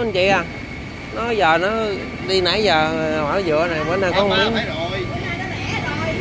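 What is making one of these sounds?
A busy indoor market hums with distant chatter.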